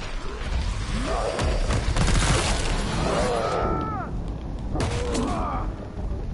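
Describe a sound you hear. A monster growls and shrieks.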